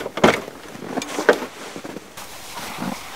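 Gear thuds and rattles as it is loaded into a car's boot.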